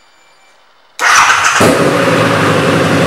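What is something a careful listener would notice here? A motorcycle engine starts and idles loudly close by.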